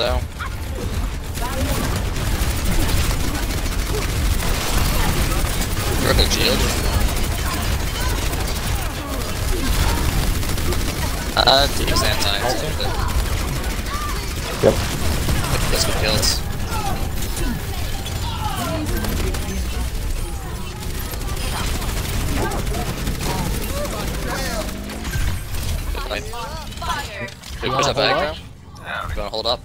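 A game's weapon fires rapid energy shots.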